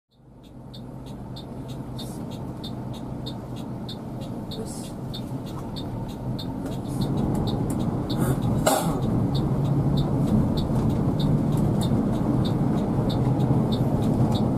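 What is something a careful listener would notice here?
A vehicle's engine rumbles steadily from inside the cab, growing louder.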